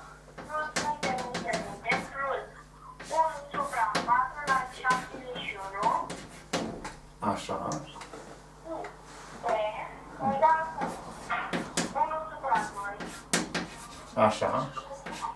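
Chalk taps and scratches on a blackboard.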